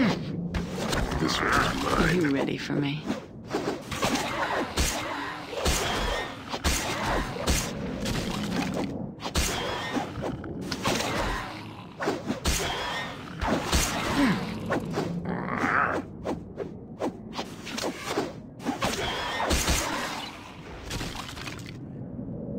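Swords and weapons clash and strike repeatedly in a fight.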